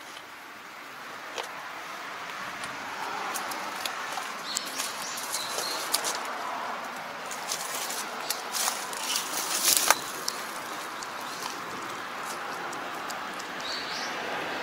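Footsteps crunch on dry grass and stubble.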